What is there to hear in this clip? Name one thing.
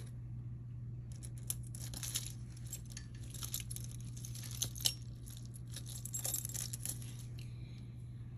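Metal jewelry clinks and rattles softly against a hard surface.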